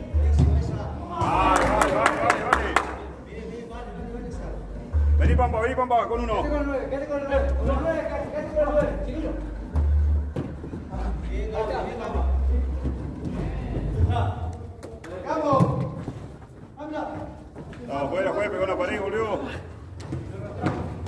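Men shout and call out to each other across an echoing indoor pitch.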